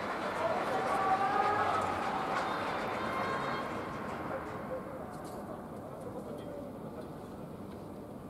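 A crowd cheers and applauds across a large open stadium, slowly fading.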